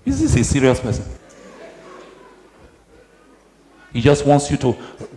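An elderly man speaks with animation in an echoing hall.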